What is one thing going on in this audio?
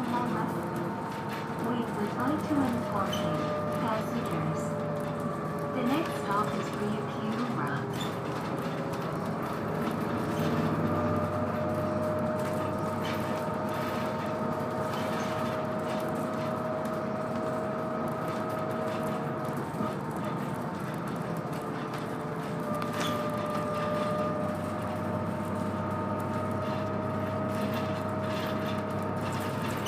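A bus engine hums steadily, heard from inside the bus.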